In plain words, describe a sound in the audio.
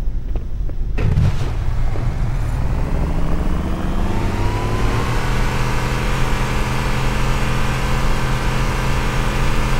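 A vehicle engine starts and revs, rising in pitch as it speeds up.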